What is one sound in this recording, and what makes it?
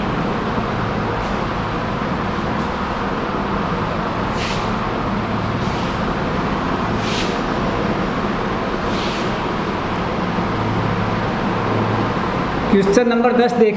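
A cloth rubs and wipes across a whiteboard.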